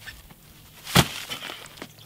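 A heavy sack thuds onto the ground.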